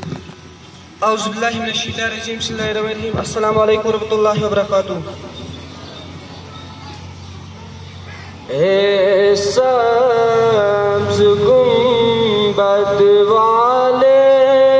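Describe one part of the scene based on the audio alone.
A young boy recites in a melodic, chanting voice through a microphone.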